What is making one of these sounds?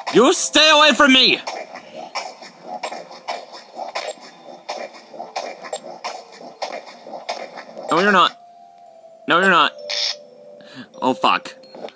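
Short electronic game tones beep and chime from a small speaker.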